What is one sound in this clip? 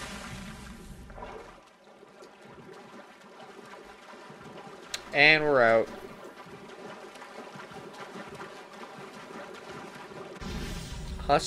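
Water sloshes and splashes as a figure swims.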